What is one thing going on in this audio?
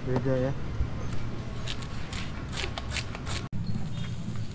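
A knife chops on a cutting board.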